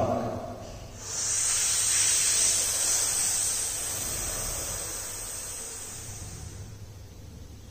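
A man breathes out long and loudly through his nose.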